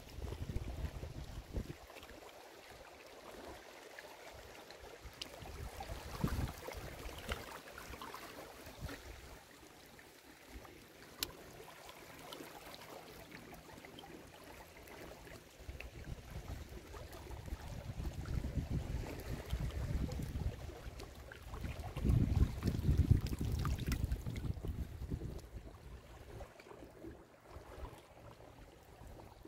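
Wind blows outdoors in low gusts.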